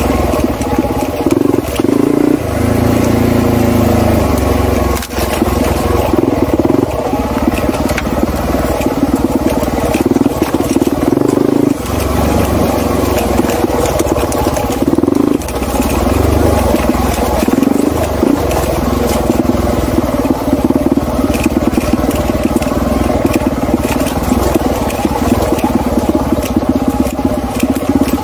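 A dirt bike engine revs loudly up and down, close by.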